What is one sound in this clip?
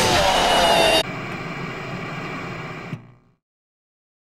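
Static hisses and crackles, then cuts to silence.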